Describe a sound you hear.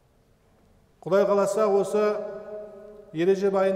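A young man speaks in a steady, drawn-out voice into a nearby microphone.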